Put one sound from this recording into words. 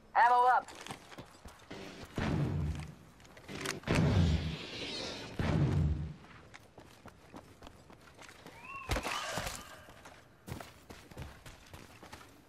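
Footsteps thud quickly as a game character runs.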